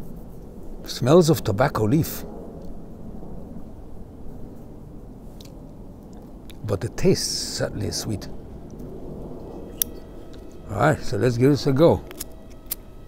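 An older man speaks calmly and close to a microphone, in short bursts.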